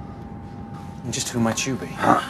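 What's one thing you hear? A man asks a question sharply.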